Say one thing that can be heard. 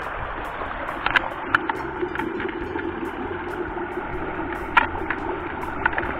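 Water sloshes in a tub of fish.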